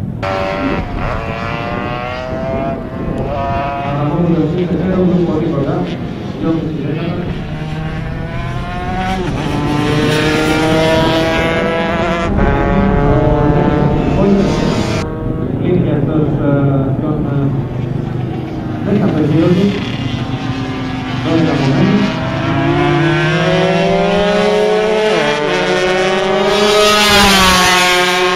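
Racing motorcycle engines scream at high revs, rising and falling in pitch as they pass.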